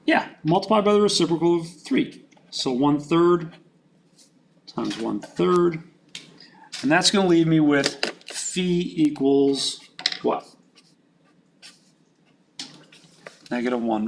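A marker squeaks as it writes on paper.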